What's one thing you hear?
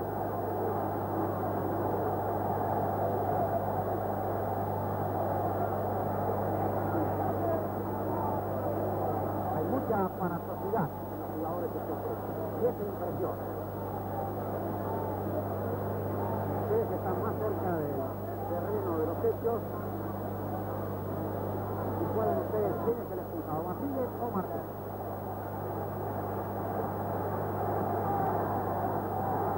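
A crowd of men murmurs and shouts.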